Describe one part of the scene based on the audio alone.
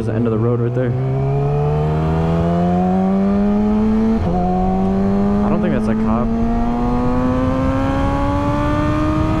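A motorcycle engine revs steadily higher, dropping briefly at a gear change.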